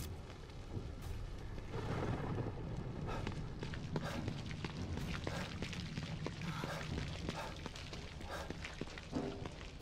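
Footsteps run on wet pavement.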